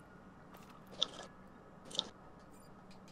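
Menu selections click softly.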